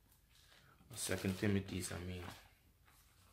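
A man reads aloud softly close by.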